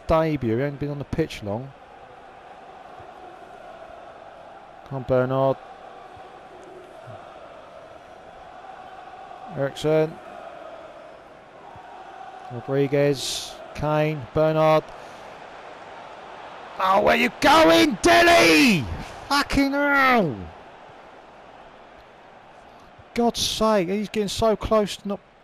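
A large stadium crowd murmurs and hums steadily in the distance.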